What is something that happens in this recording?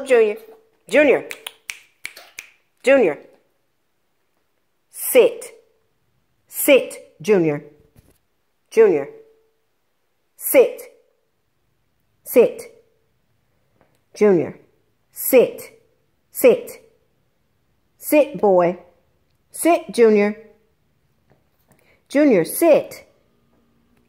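A small dog barks sharply again and again, close by.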